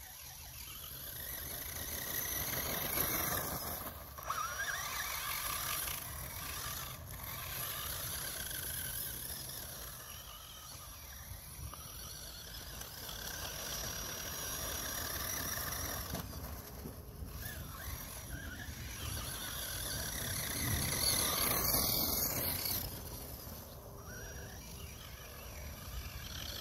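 A small electric motor whines as a toy car races across the ground.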